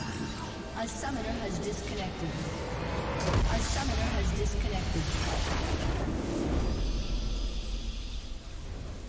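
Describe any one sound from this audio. Magic blasts whoosh and crash in a video game fight.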